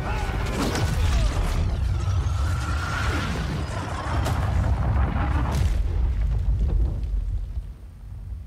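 Electric energy crackles and roars loudly.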